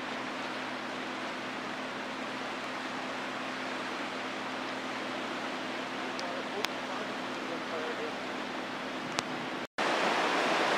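A swollen river rushes and roars steadily.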